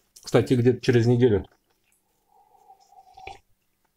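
A man slurps a drink from a cup.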